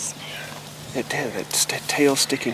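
A man talks quietly close by.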